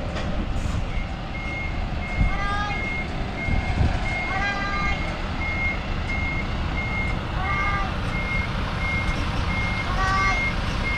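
A reversing alarm beeps steadily.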